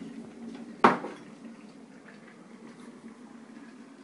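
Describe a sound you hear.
Water pours from a kettle into a cup.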